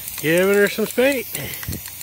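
An aerosol can sprays with a steady hiss.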